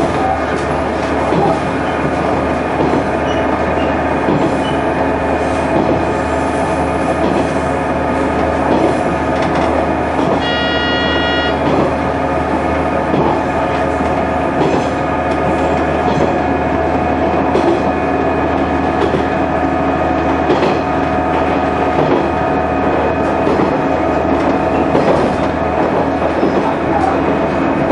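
A train engine drones steadily from inside the cab.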